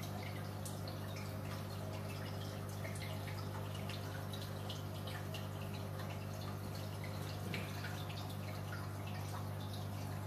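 Small bubbles fizz and pop in water.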